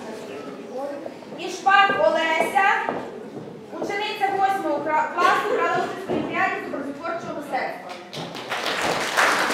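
A woman speaks clearly into a microphone, heard through loudspeakers.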